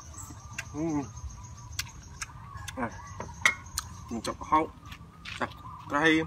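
A man chews and slurps food noisily up close.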